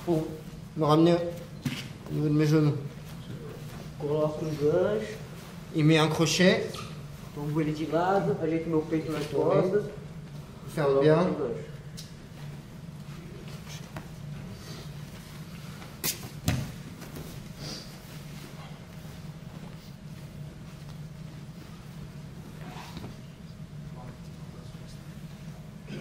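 Bodies shift and thump against a mat.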